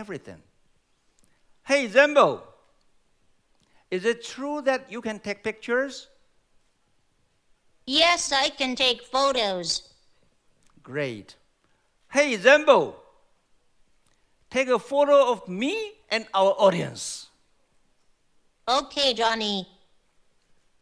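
A man speaks calmly into a microphone over loudspeakers in a large hall, pausing between phrases.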